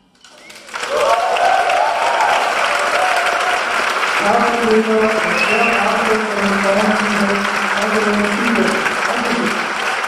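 A woman sings into a microphone with the band.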